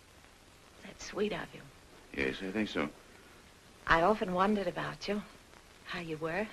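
A woman speaks softly, close by.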